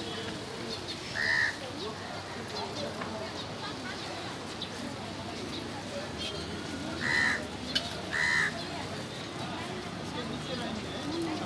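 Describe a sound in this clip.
A crowd murmurs at a distance outdoors.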